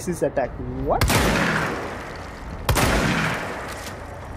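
A gun fires loud shots that ring out with a long echo.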